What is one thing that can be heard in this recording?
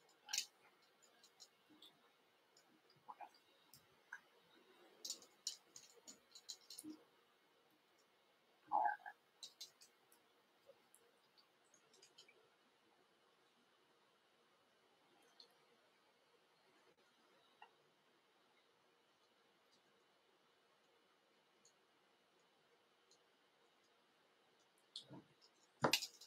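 Small clicks and soft rustles come from thread and tools handled close by.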